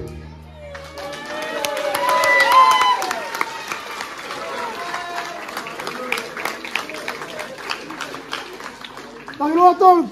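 A crowd claps along in a quick, steady rhythm.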